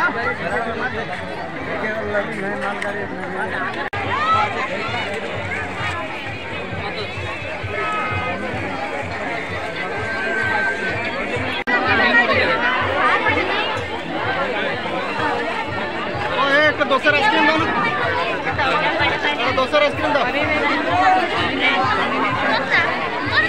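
A crowd chatters all around, outdoors.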